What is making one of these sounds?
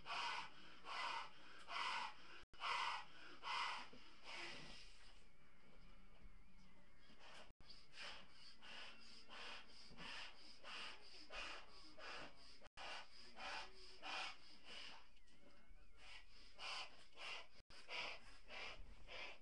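A man blows hard into a balloon in short, breathy puffs.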